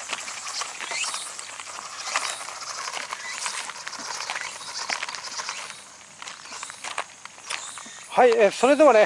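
A toy car's tyres crunch and scatter gravel.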